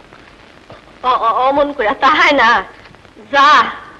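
A middle-aged woman speaks up close in an upset, pleading voice.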